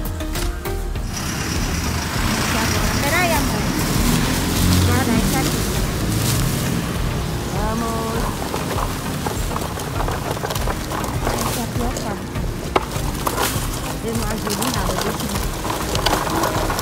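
A shopping cart rattles as its wheels roll over rough pavement.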